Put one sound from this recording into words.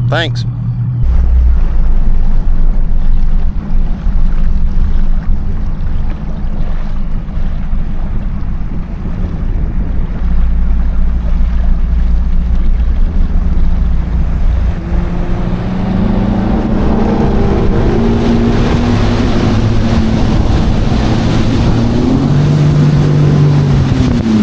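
A boat motor roars as the boat speeds across the water.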